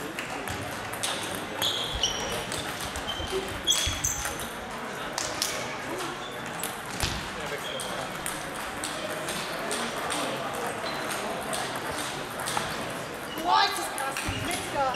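Other balls tap in the background of a large echoing hall.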